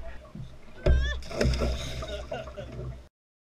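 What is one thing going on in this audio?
A fish splashes into the water beside a boat.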